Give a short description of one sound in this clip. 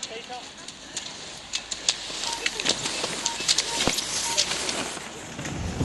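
Ski poles click and clack against the snow.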